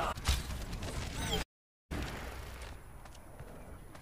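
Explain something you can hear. A heavy gun fires several loud shots.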